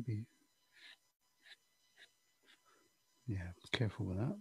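A pastel stick scratches softly on paper.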